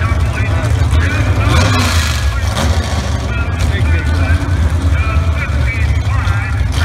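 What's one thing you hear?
Drag racing car engines rumble loudly at idle.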